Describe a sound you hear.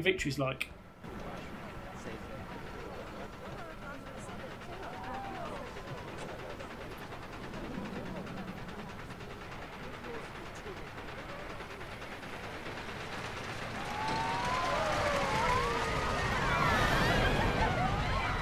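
A roller coaster rumbles and rattles along a wooden track, growing louder near the end.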